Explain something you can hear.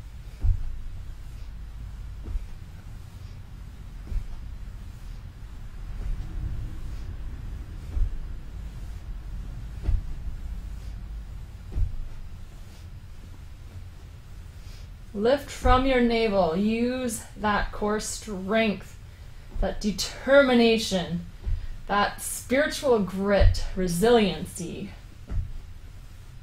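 A leg thumps softly onto a mattress again and again.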